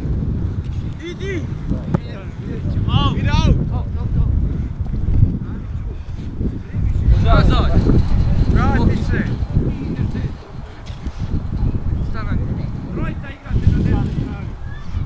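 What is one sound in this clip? Players shout to each other at a distance across a field.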